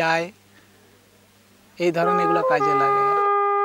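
A man speaks loudly and with animation close by, with pauses.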